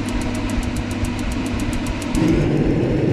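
A gas heater's igniter clicks rapidly.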